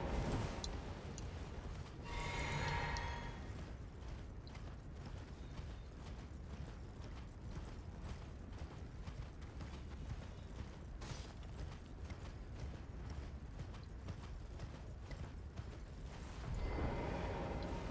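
Hooves gallop rapidly over snow.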